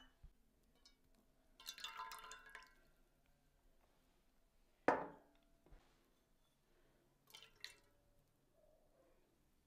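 Oil trickles softly into a bowl.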